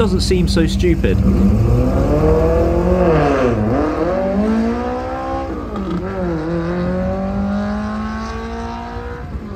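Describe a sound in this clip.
A car engine roars as the car speeds away, climbing through the gears and slowly fading.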